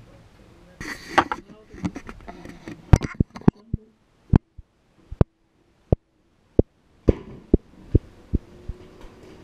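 Glass jars and bottles clink and knock.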